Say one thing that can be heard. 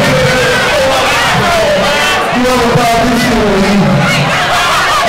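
A man raps loudly through a microphone.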